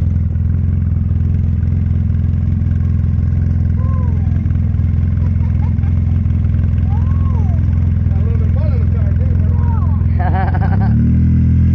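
An engine idles with a low, steady rumble.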